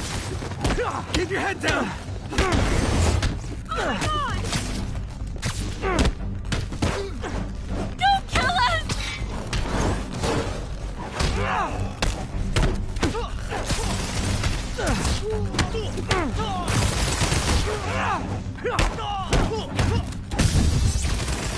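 Punches and kicks land with sharp thuds in a fight.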